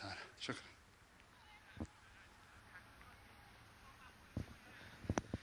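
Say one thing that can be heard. A man speaks briefly outdoors.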